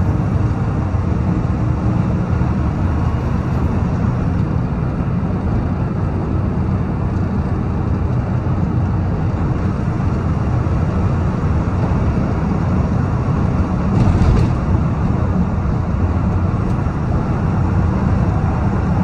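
A truck's diesel engine rumbles steadily inside the cab.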